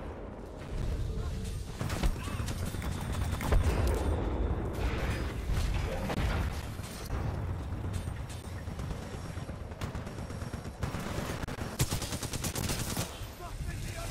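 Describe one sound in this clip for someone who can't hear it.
Rapid gunfire rattles and booms in a video game.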